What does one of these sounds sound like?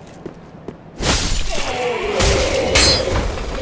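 A sword clashes and slashes loudly in a sudden fight.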